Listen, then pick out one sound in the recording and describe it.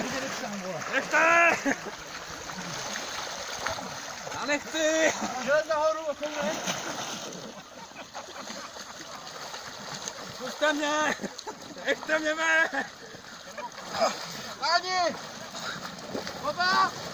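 Icy water splashes and sloshes as people struggle in it.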